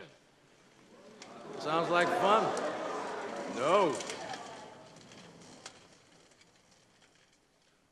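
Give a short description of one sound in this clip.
A crowd laughs and cheers in a large hall.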